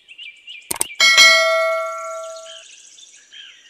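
A bell chimes and rings out slowly.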